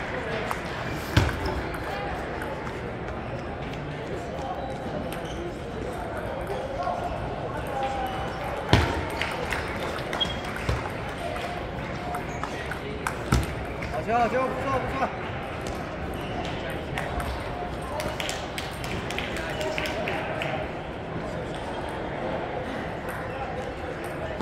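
A ping-pong ball clicks sharply off paddles and a table.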